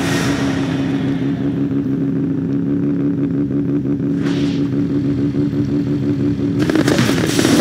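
A race car engine idles with a steady hum.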